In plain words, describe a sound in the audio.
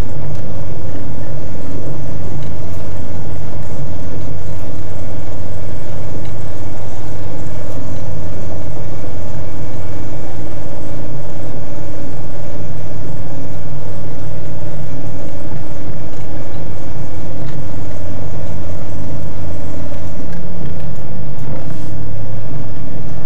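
Tyres crunch over packed snow.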